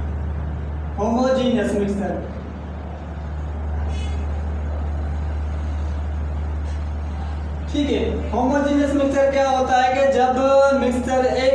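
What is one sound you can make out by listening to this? A young man speaks calmly and clearly.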